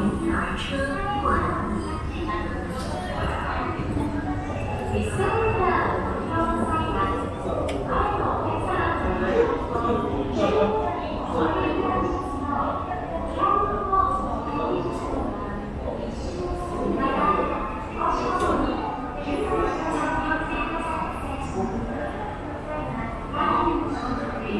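A crowd of people chatters nearby in a large echoing hall.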